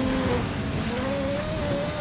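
Car bodies bump and scrape against each other.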